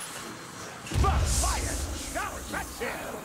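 A heavy thump lands with a low rumble.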